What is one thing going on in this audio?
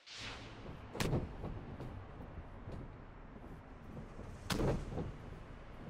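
Heavy blows thud during a wrestling scuffle.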